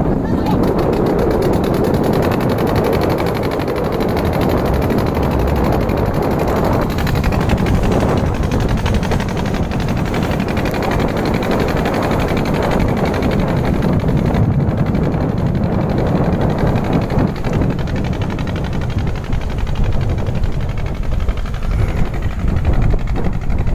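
Choppy water splashes and churns.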